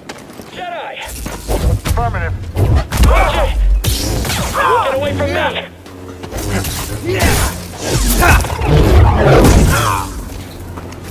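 A laser sword hums and whooshes as it swings.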